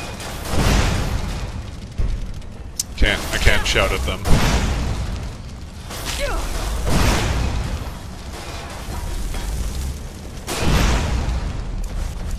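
A woman grunts and cries out in pain.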